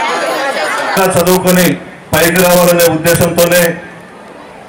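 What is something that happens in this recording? A man speaks forcefully into a microphone over a loudspeaker.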